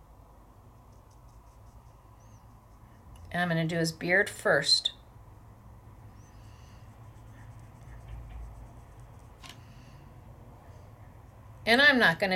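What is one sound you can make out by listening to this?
A small brush softly strokes paper.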